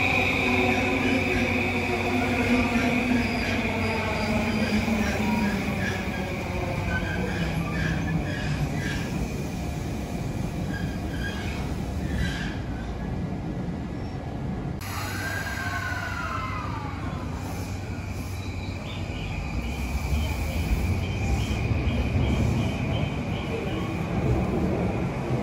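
An electric train rolls along the tracks with a low, steady rumble.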